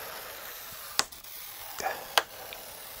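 A plastic laptop cover clicks as it is pried open.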